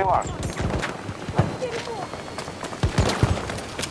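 Gunshots crack in quick bursts nearby.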